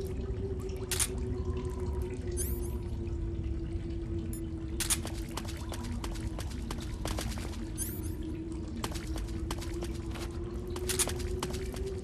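Short electronic blips sound as a menu opens and closes.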